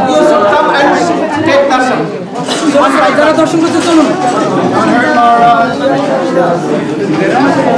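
An elderly man sings into a microphone.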